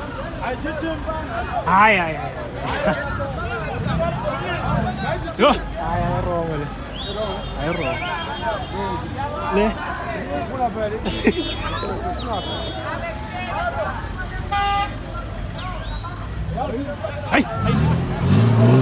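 A crowd of men and women talk and call out loudly nearby, outdoors.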